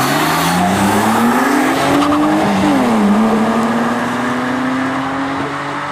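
A car engine revs hard, rising and falling in pitch as the car speeds past.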